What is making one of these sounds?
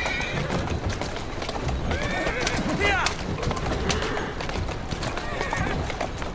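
Horse hooves clatter in a steady rhythm.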